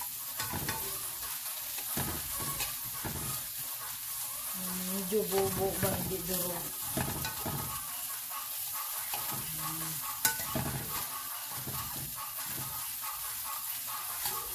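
A fork scrapes and taps against a frying pan.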